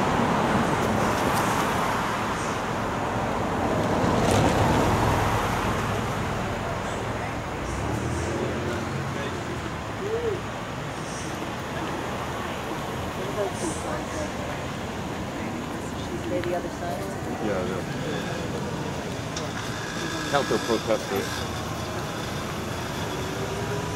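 Cars drive past close by on a street, outdoors.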